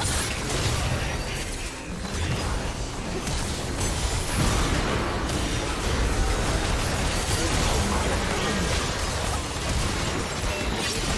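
Magical blasts boom and crash repeatedly.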